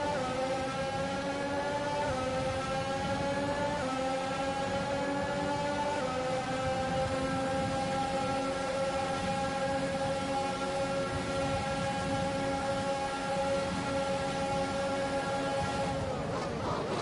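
A racing car engine screams at high revs, rising and dropping briefly with each gear change.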